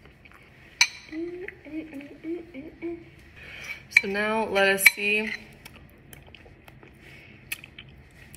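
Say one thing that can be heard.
A spoon clinks and scrapes against a bowl.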